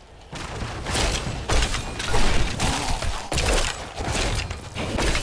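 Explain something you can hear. Weapons clash and strike enemies in a game fight.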